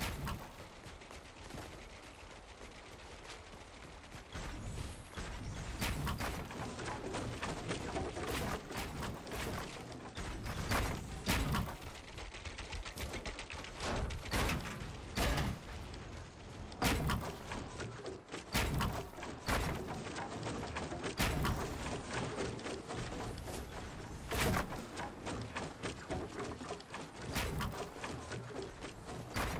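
Footsteps patter on wooden floors.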